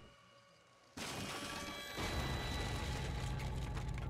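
A wooden crate crashes down and splinters, followed by a deep rumble.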